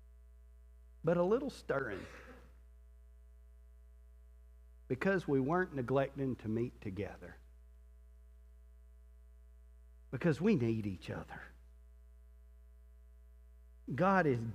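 A man speaks calmly through a headset microphone, in short phrases with pauses.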